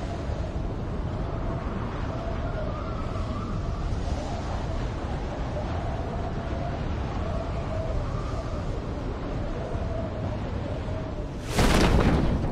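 Wind rushes loudly and steadily during a fast fall through the air.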